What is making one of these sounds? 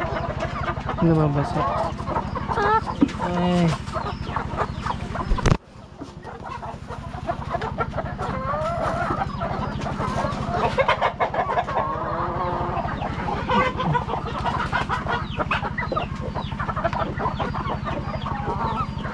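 Many chickens cluck and squawk close by.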